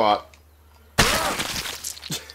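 A heavy stomp thuds onto a body.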